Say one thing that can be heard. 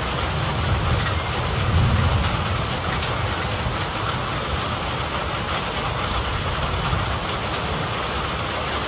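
Rain drips and patters onto a roof and the ground nearby.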